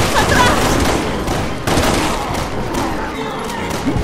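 Pistol shots ring out in a confined space.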